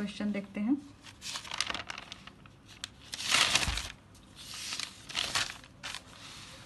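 Paper pages rustle and flip as they are turned.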